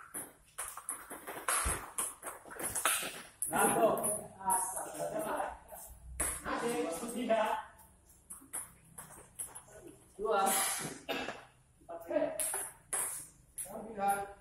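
A ping-pong ball clicks sharply back and forth on a table and paddles.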